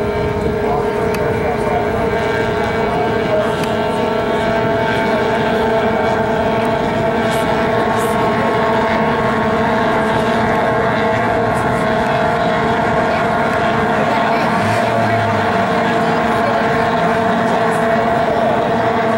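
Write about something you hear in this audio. Racing boat engines whine loudly and steadily.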